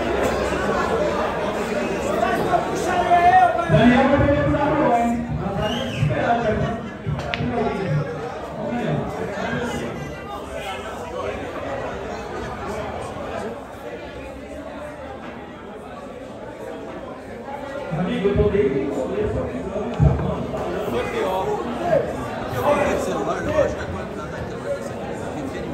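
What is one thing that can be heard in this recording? A crowd of spectators murmurs and chatters.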